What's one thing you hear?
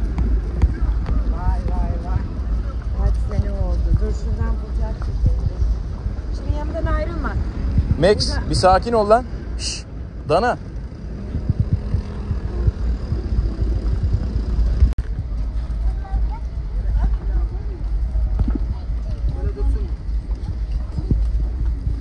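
Men and women chat nearby as they walk past.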